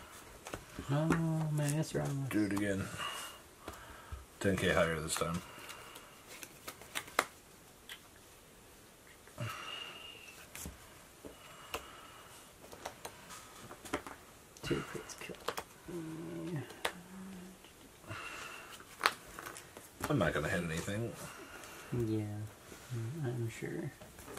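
Playing cards tap and slide on a table mat.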